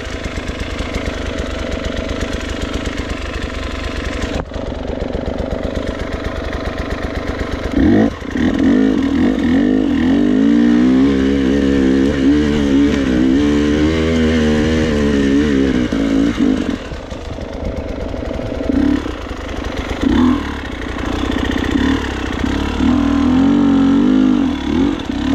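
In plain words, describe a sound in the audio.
A dirt bike engine idles with a rapid putter, then revs up and down close by.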